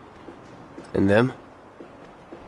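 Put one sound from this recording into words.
A young man speaks in a low, flat voice.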